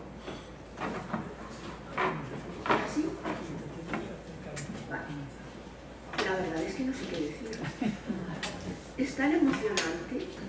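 A man knocks against a table near a microphone.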